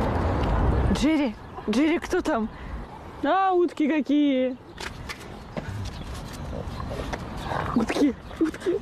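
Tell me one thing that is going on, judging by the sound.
A young woman calls out to a dog in a lively, high voice.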